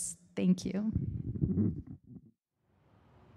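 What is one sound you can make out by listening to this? A woman speaks with animation through a microphone.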